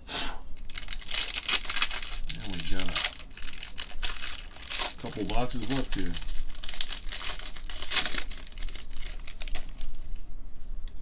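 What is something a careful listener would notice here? Gloved hands tear open and crinkle a foil card pack wrapper.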